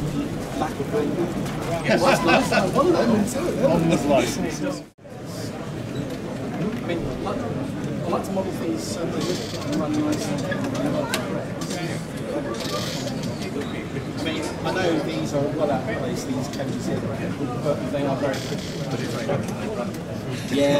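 A model train rattles and clicks along the track.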